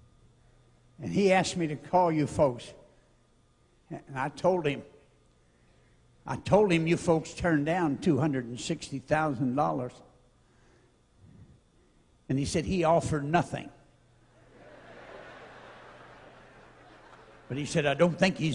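An elderly man speaks with animation through a microphone, with pauses between phrases.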